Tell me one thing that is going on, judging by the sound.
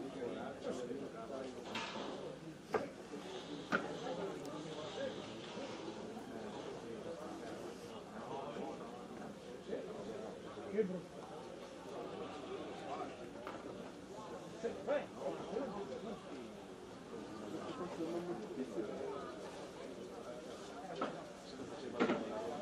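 A small group of men and women chat nearby, outdoors.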